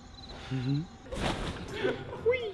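A person lands with a thud on a trampoline.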